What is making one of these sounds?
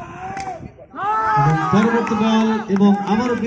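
A crowd of young men cheers and shouts loudly.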